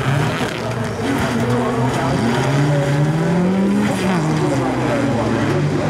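A car crashes and rolls over with a crunching of metal.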